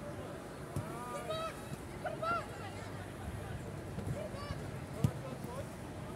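A football thuds off a kick.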